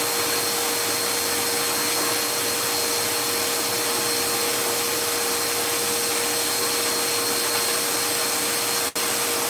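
A powerful blow dryer roars steadily close by.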